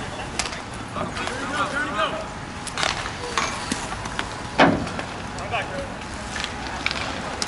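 Hockey sticks sharply clack against a ball.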